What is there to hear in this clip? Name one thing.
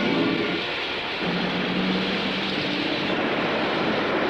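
A train rumbles loudly past close by.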